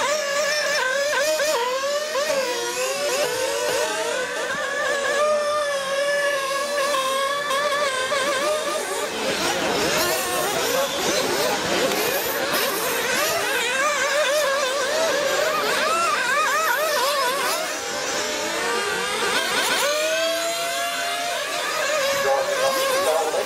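Small electric model cars whine loudly as they race around outdoors.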